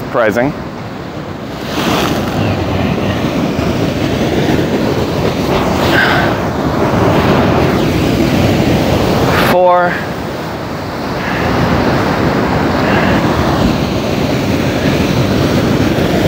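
Waves crash and wash over rocks close by, outdoors in wind.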